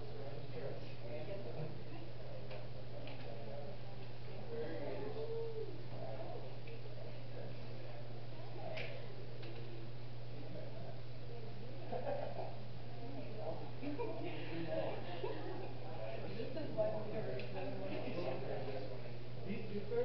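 Several young people chatter at once in a room.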